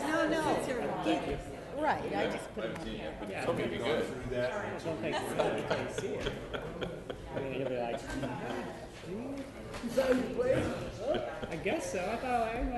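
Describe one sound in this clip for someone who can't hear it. An adult man talks casually nearby.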